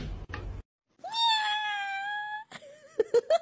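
A kitten meows loudly.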